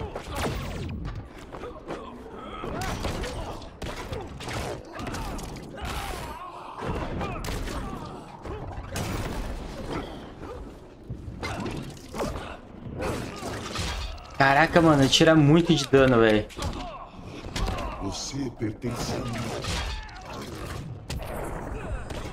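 Punches and kicks land with heavy thuds and cracks.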